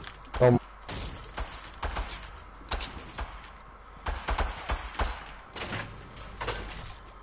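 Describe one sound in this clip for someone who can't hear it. Footsteps thump quickly across hollow wooden boards.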